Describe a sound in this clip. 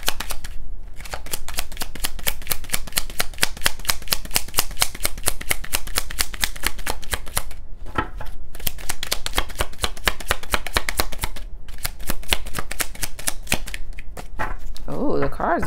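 Playing cards riffle and flutter quickly as they are shuffled.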